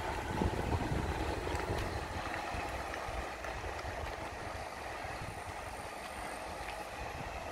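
A car engine idles.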